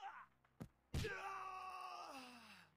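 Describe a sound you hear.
A knockout chime rings out.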